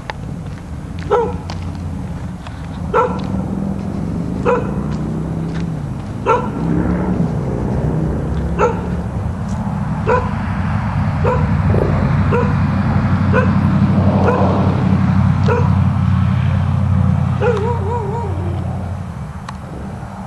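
A diesel fire engine idles in the distance.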